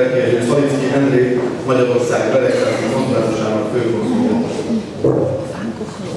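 A young man reads out through a microphone.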